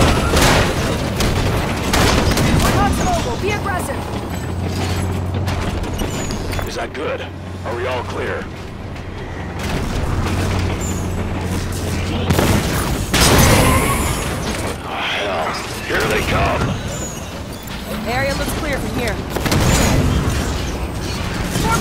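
Gunfire and explosions boom.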